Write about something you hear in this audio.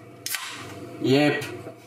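A young man speaks briefly, close by.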